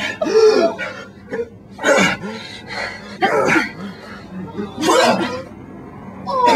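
A man coughs and splutters, choking.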